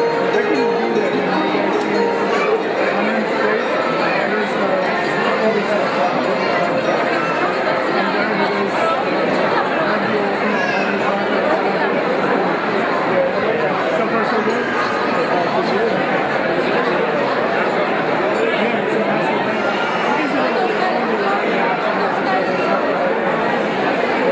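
A crowd of men and women chatter loudly all at once in a large room.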